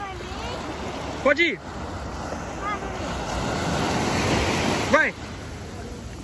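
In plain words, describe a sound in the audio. Small waves wash and break on a shore.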